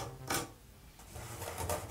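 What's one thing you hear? A spoon scrapes against hard plastic.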